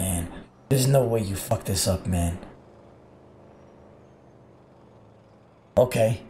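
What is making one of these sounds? A young man talks through a close microphone, with animation.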